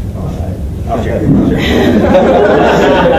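A crowd of men and women chatter and laugh together.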